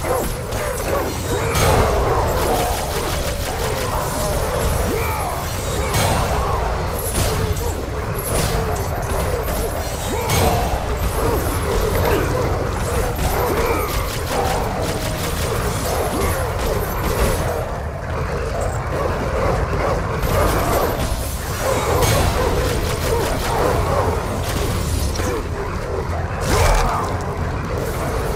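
Blades swish and slash through the air again and again.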